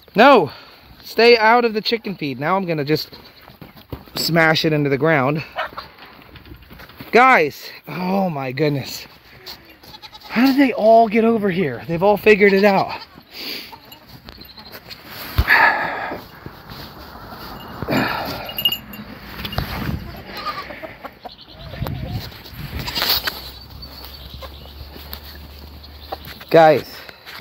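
Goats bleat loudly and repeatedly close by.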